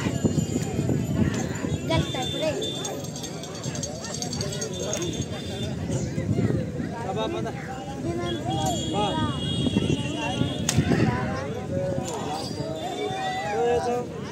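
A crowd of men chatters and shouts outdoors.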